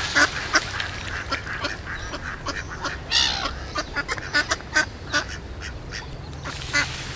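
Ducks quack repeatedly close by.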